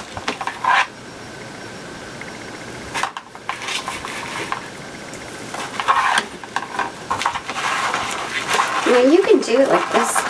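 Plastic mesh ribbon rustles and crinkles as it is handled.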